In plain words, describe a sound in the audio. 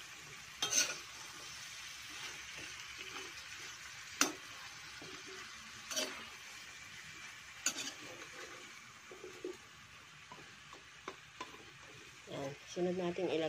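A metal spatula scrapes and clacks against a wok.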